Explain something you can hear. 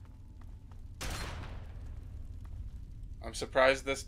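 A fire crackles softly in a metal barrel.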